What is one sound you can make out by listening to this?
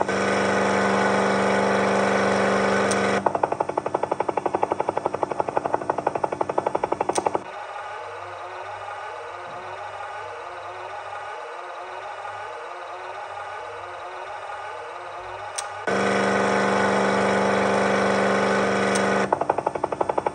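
A toy car engine hums steadily.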